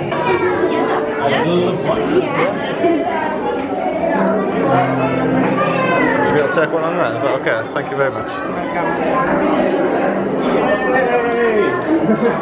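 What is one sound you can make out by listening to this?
Several women talk and laugh nearby in an echoing room.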